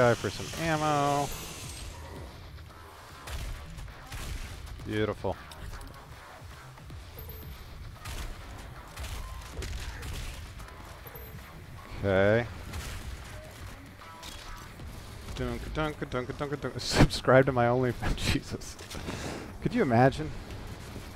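Gunfire and blasts sound from a video game.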